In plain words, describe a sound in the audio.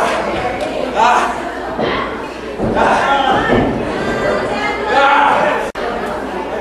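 A crowd shouts and cheers in an echoing hall.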